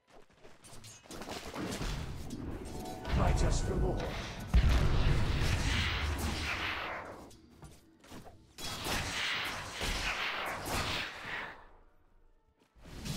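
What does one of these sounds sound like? Magic spells crackle and boom in a fight.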